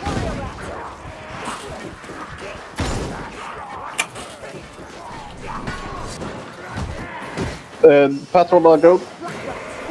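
Blades hack and slash into creatures.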